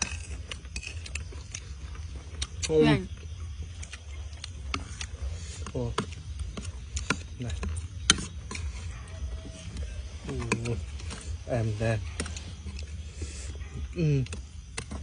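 A man chews and smacks his lips loudly, close by.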